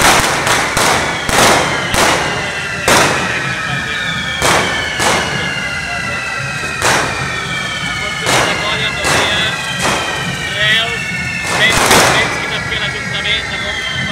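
Fireworks burn with a loud, steady hissing and whistling.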